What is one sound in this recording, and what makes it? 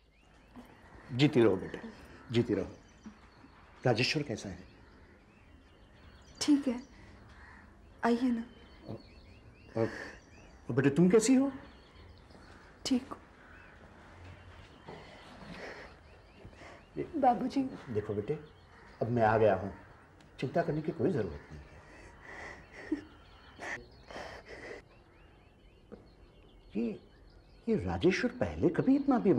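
A middle-aged man speaks calmly and seriously, close by.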